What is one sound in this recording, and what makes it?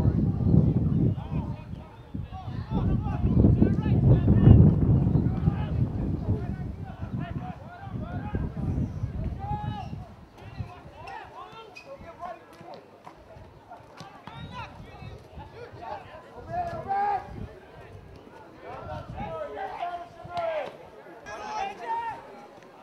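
Spectators call out and talk at a distance.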